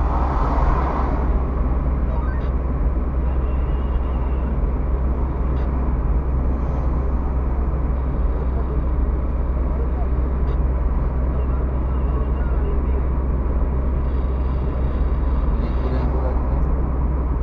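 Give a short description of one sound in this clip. A car engine hums steadily with a low road rumble from inside the moving car.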